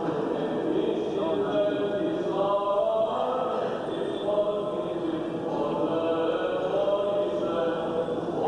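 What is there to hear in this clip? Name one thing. Men chant slowly in a sustained, droning melody.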